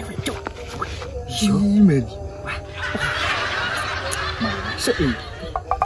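Two young men laugh together close by.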